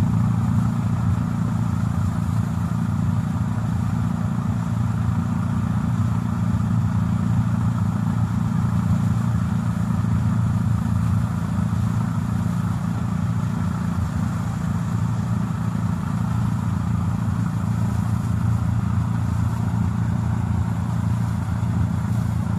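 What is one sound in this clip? A snow brush whirs as it sweeps the road.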